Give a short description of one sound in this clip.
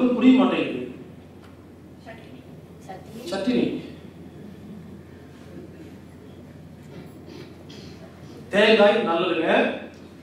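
A man speaks calmly into a microphone close by, with pauses.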